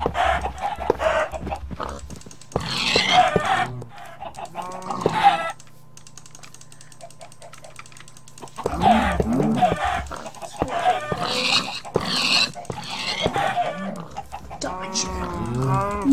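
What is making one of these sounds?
Blows thud against animals in quick succession.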